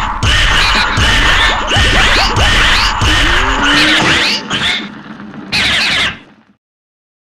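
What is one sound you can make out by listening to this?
Punches and hits land with sharp thuds.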